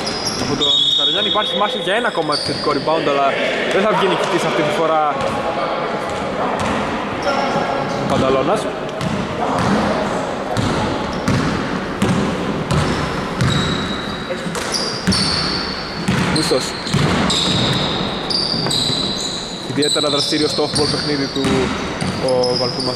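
Men call out and talk loudly across the echoing hall.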